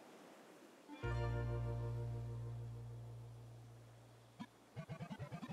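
A low game chime rings out and slowly fades.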